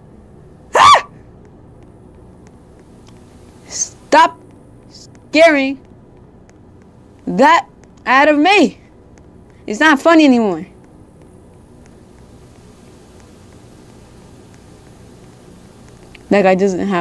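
A teenage boy speaks excitedly in short bursts, close to a microphone.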